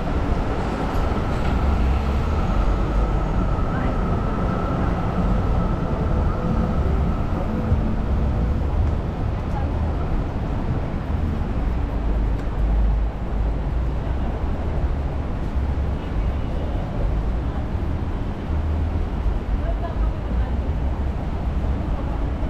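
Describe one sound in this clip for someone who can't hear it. City traffic rumbles steadily along a busy street outdoors.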